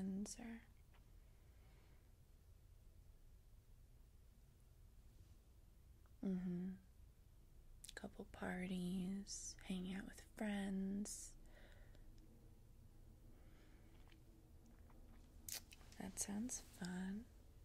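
A young woman speaks close to a microphone, calmly and in short bursts.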